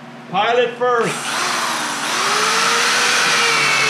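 A power tool whirs steadily.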